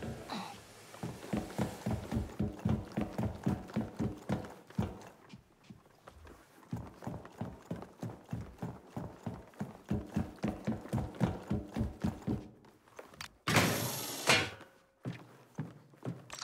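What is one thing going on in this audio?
Quick footsteps clank on a metal grating.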